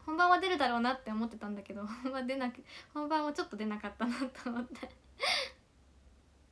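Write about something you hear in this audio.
A young woman speaks cheerfully and close to a microphone.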